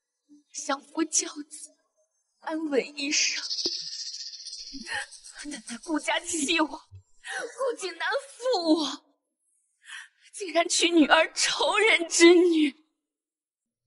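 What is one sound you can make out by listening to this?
A young woman speaks with strong emotion, crying out and sobbing.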